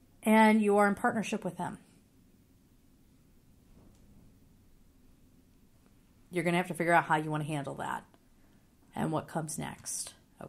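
A woman speaks with animation close to a microphone, pausing between phrases.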